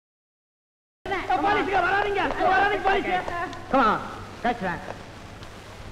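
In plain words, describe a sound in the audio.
A man shouts excitedly.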